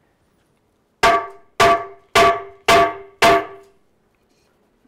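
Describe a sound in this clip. A stick strikes a hollow object several times, each hit ringing briefly.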